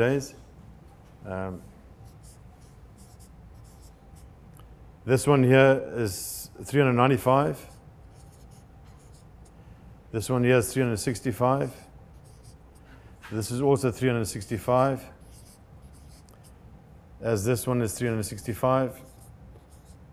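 An elderly man speaks calmly in short phrases with pauses.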